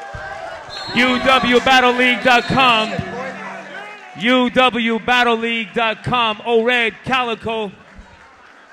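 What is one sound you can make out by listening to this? A man raps loudly into a microphone, heard through loudspeakers.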